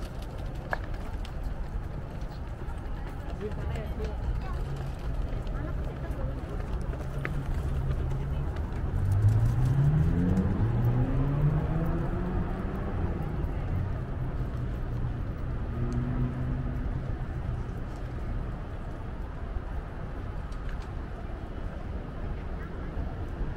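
Footsteps of several people walking on paving stones.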